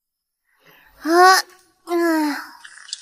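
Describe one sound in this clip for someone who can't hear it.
A man calls out in a raised voice.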